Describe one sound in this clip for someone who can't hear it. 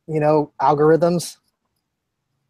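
A man speaks calmly over an online call.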